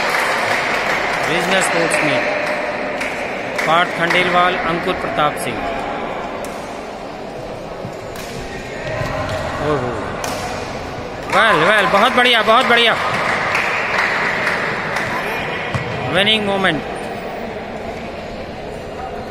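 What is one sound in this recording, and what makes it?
A badminton racket strikes a shuttlecock with a sharp pop in an echoing hall.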